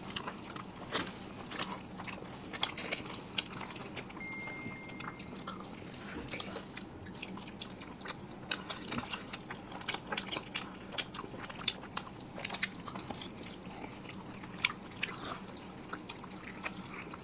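Crisp fried snacks crunch loudly close to a microphone.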